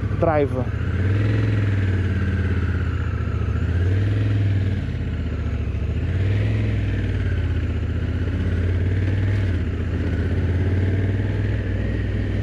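A motorcycle engine revs up and down as the motorcycle rides off.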